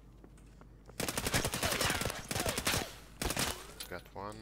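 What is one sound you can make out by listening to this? A rifle fires a rapid burst of loud shots that echo.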